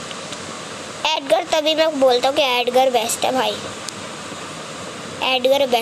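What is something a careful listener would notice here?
A boy speaks close to a microphone.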